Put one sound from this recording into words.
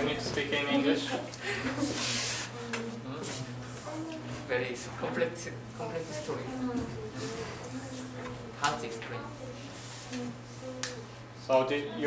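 A young man talks calmly close by.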